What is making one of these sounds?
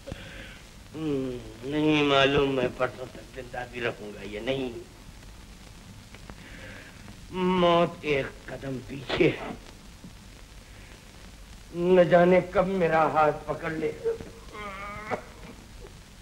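An elderly man speaks in a trembling, shivering voice.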